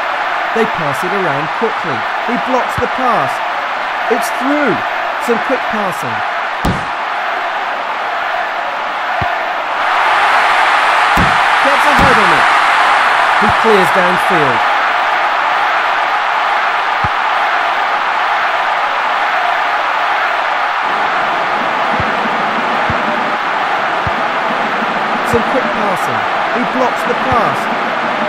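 A large crowd roars steadily, swelling louder partway through.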